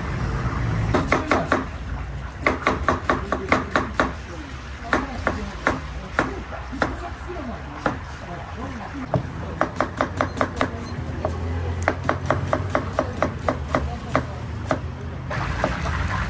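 A knife chops quickly on a cutting board with sharp repeated knocks.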